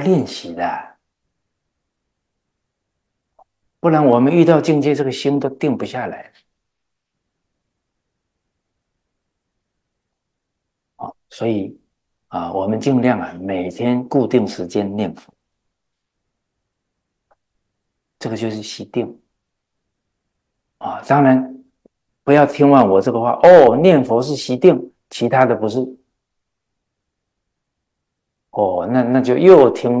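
An elderly man speaks calmly and earnestly into a close microphone, with long pauses.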